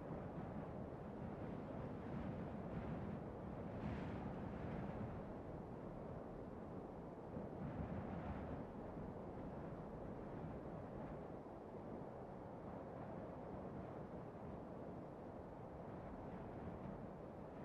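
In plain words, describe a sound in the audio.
Wind blows steadily across open mountains.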